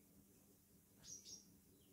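A pen scratches briefly on paper.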